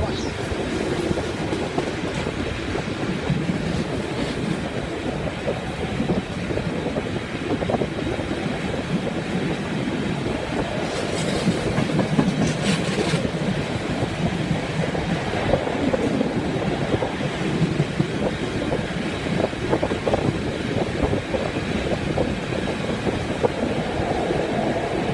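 A train rumbles steadily along the tracks, heard from an open window.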